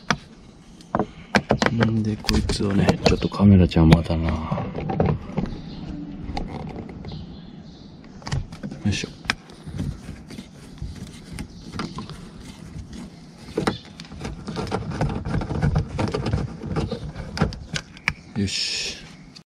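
A screwdriver scrapes and taps against plastic.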